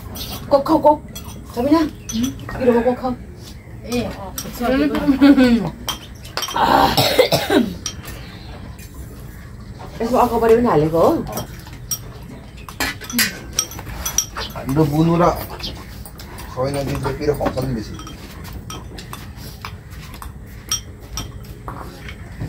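Spoons clink against bowls.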